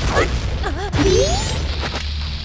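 A bomb explodes with a loud boom.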